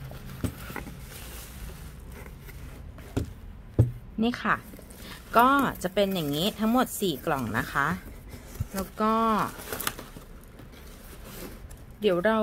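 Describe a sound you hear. A cardboard box flap bumps and scrapes.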